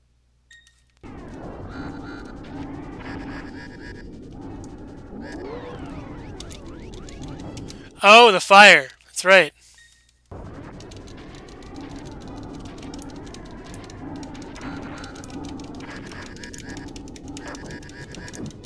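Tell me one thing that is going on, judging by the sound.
Video game laser shots and explosions go off.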